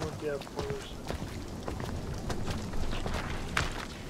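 A man's footsteps tap on cobblestones.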